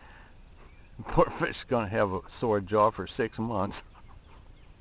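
A man speaks calmly, close to a microphone.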